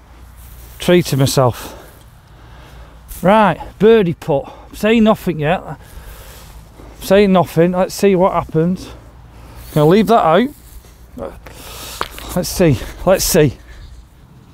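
A man talks calmly and clearly, close by.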